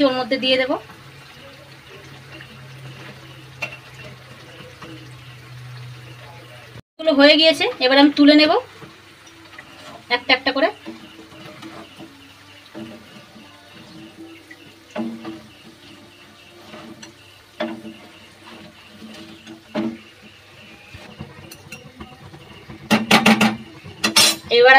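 Batter sizzles as it fries in hot oil.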